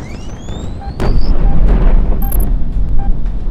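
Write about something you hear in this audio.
An explosion booms nearby.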